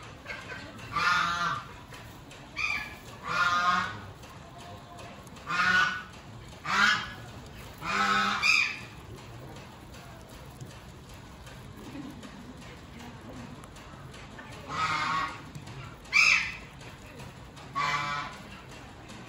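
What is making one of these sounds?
Guinea pigs squeal in short, high, repeated calls.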